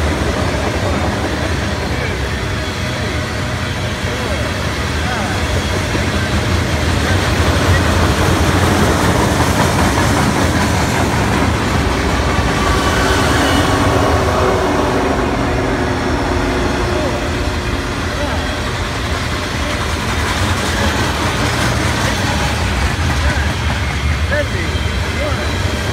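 A long freight train rumbles and clatters past close by on the rails.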